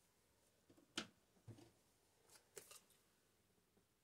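Clothing rustles close by as a person settles into place.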